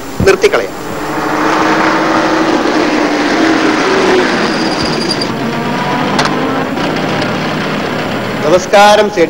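A car engine roars as a car speeds along a road.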